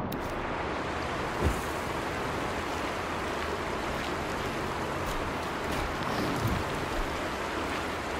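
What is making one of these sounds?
Footsteps run over dry, sandy ground.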